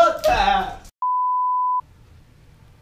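A steady test tone beeps.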